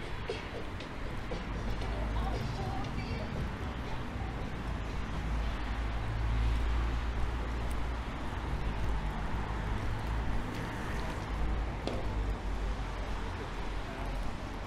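Cars drive past on a nearby road with a low rumble.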